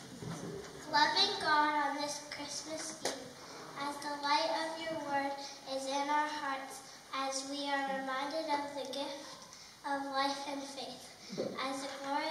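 A young woman sings through a microphone in a large room.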